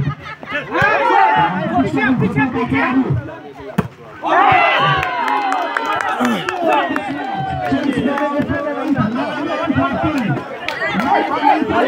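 A crowd of young men shout and cheer outdoors.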